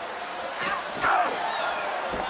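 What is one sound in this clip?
A body thuds hard onto a wrestling ring mat.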